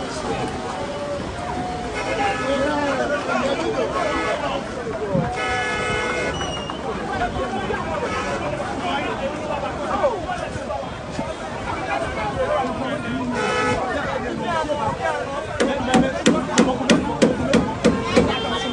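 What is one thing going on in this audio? A crowd of men shout and talk excitedly nearby, outdoors.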